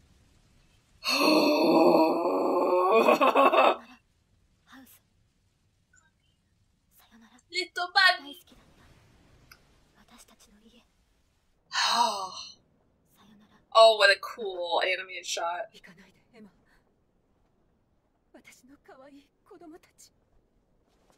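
A young woman talks with animation into a headset microphone, close by.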